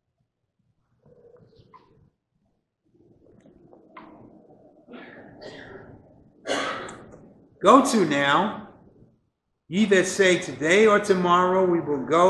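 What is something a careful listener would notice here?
An elderly man speaks slowly and solemnly into a microphone.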